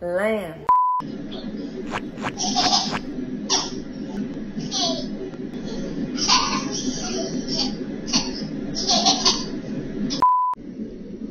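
Toddlers babble and squeal.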